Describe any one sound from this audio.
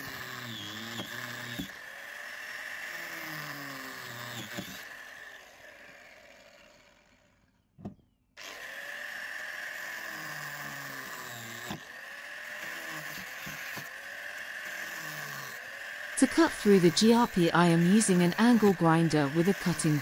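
A power tool whirs steadily close by.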